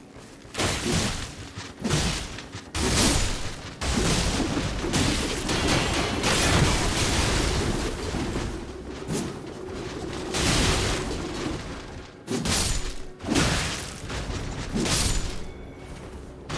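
A sword slashes and clashes against skeletons in quick strikes.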